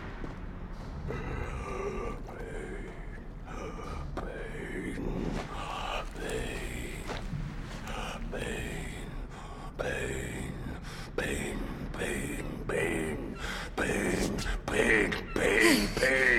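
A monstrous creature growls and snarls loudly.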